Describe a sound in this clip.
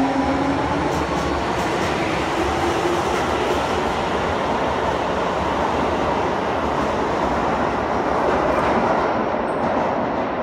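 A train pulls out with a loud rumble and rattle, echoing through an underground station.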